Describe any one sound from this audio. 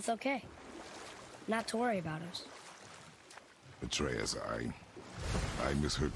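Oars splash in water as a small boat glides along.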